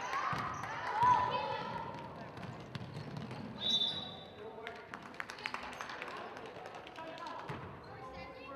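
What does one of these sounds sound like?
A basketball bounces on a hard floor with an echo.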